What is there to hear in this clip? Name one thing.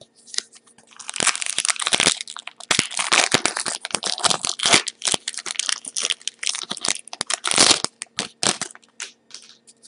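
Plastic wrapping crinkles and tears loudly close by.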